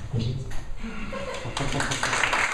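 A man speaks at a distance in a room.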